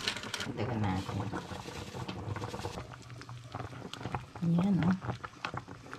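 A utensil scrapes and clinks against a pot while stirring soup.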